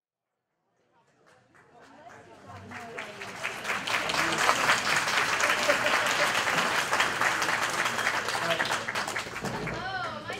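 A crowd of adults chatters in a large, echoing room, fading in at first.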